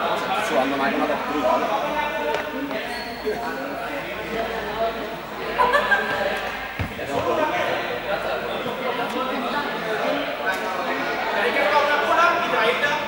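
Young people talk and chatter close by in a large echoing hall.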